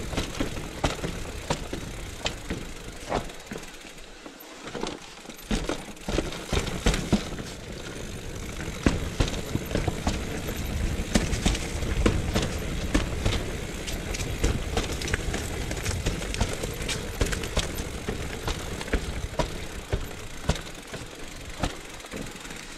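A bicycle's frame and chain rattle with each bump.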